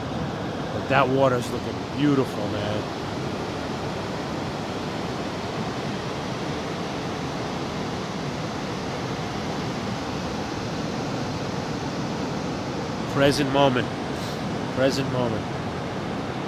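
Ocean waves wash steadily onto a beach, outdoors in wind.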